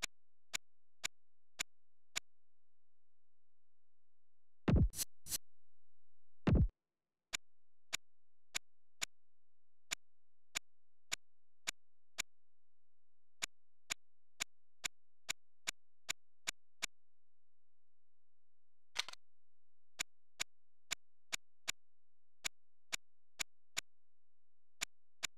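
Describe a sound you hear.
Game menu clicks tick repeatedly as options are scrolled.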